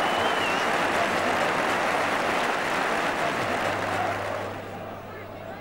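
A large crowd cheers and roars loudly.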